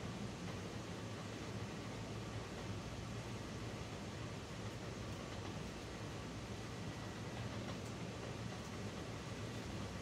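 A dog breathes softly as it sleeps.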